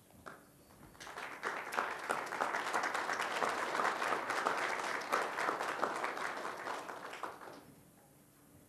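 A crowd applauds loudly, then the clapping fades.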